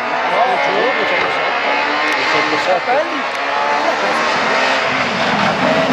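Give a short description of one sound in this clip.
A rally car engine roars loudly as the car races along the road.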